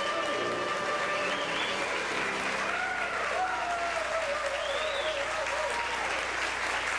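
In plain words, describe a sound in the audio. A clarinet plays a winding melody.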